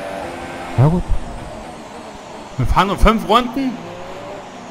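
A racing car engine blips sharply several times as gears shift down.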